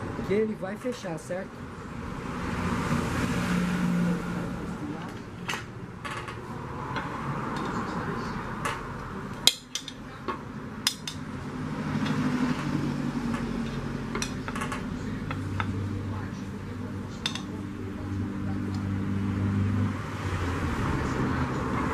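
Metal clinks and scrapes against a thin aluminium lid.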